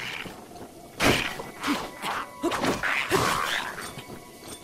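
A sword swishes and clangs in a flurry of quick strikes.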